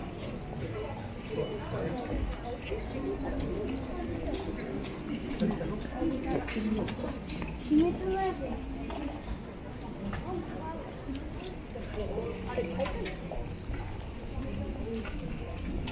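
A crowd of people chatters on a busy street.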